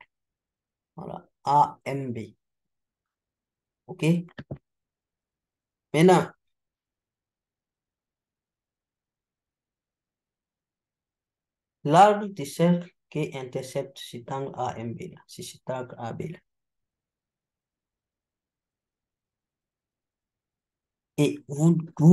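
A young man speaks calmly and close to a microphone, in short phrases with long pauses.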